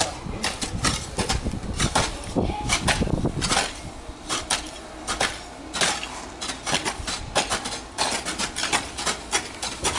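Hoes scrape and chop into dry ground and grass, again and again.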